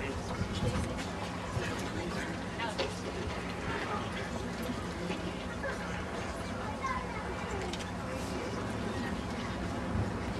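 A crowd of teenagers chatters and calls out nearby outdoors.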